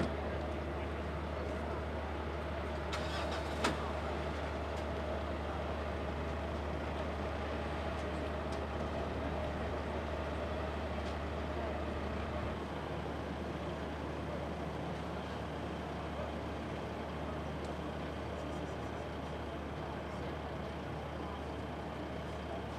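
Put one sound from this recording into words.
Men and women talk quietly in the distance outdoors.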